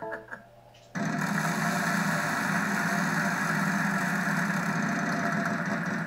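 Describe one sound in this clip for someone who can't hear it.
A game wheel clicks rapidly as it spins, heard through a television speaker.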